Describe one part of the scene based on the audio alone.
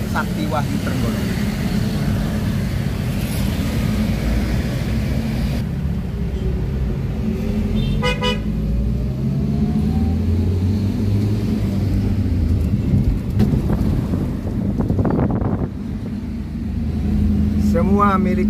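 A car engine hums steadily while driving in traffic.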